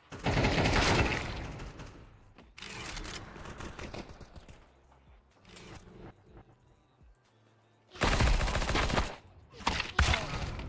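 Bursts of rapid gunfire crack.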